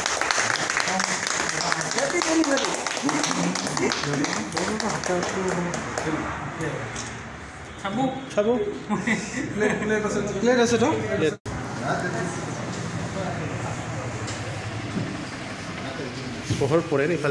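A small group of people chat and murmur nearby.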